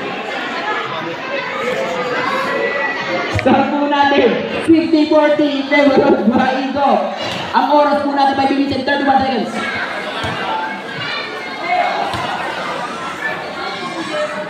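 A crowd chatters and shouts outdoors.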